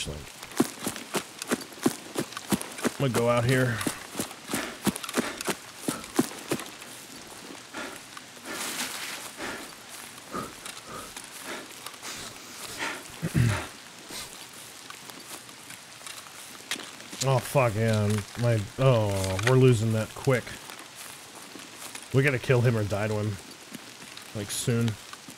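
Footsteps crunch quickly on gravel and grass.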